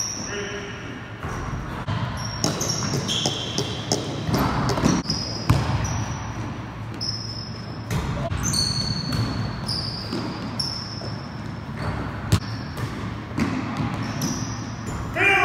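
Sneakers squeak sharply on the wooden floor.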